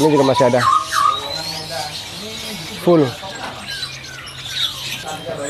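Many small birds chirp and tweet nearby.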